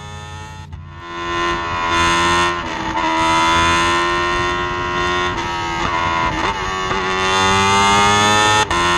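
A race car engine whines loudly at high revs.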